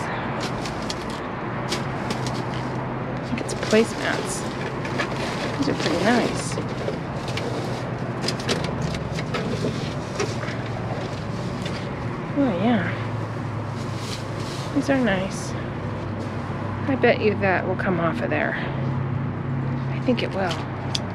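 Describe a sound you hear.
Cardboard and loose objects clatter and knock as they are moved.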